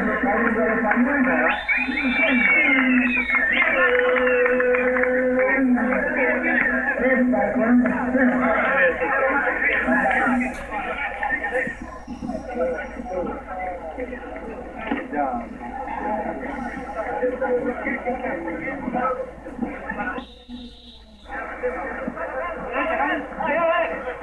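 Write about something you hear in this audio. A large outdoor crowd chatters and shouts loudly.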